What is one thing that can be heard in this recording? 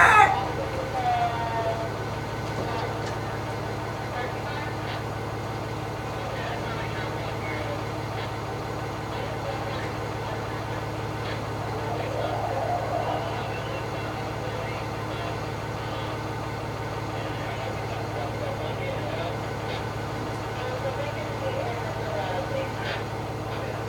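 A hen clucks softly nearby.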